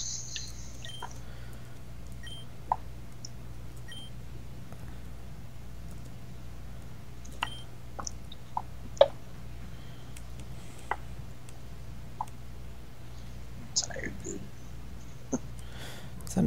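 Short electronic menu beeps blip now and then.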